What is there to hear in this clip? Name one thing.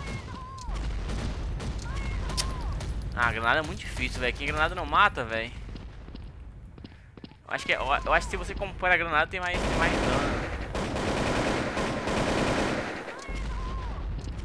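A grenade explodes with a loud boom.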